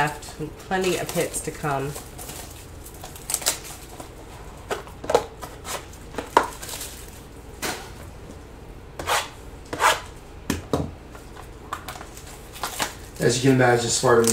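Foil wrappers crinkle as they are torn open.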